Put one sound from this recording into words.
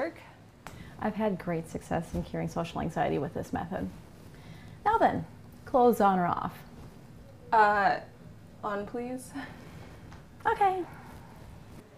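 A woman talks calmly and cheerfully, close by.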